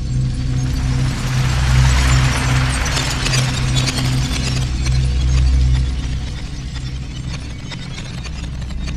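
A low magical hum throbs in steady pulses.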